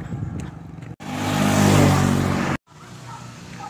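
A motorcycle engine rumbles as it drives past.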